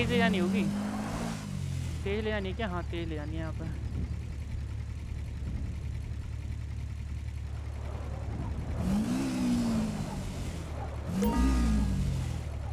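A motorbike engine rumbles low and steady, revving up briefly now and then.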